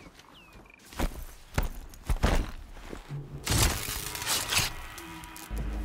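A blade strikes with sharp thuds.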